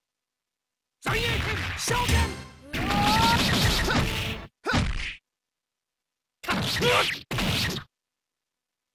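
Fighting game blows and energy blasts crash in quick bursts.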